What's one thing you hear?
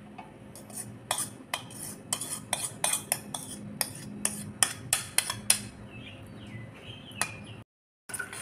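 A bowl knocks sharply against a plate again and again.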